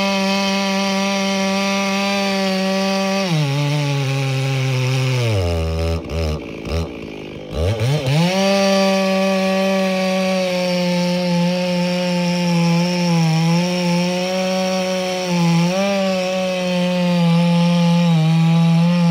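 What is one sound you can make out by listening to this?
A large two-stroke chainsaw cuts through a log at full throttle.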